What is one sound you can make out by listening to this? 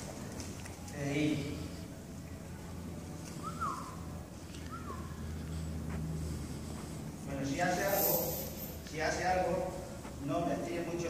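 A man speaks calmly nearby in a large echoing hall.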